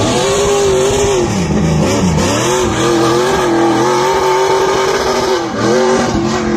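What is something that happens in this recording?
A car engine roars loudly, revving up and down.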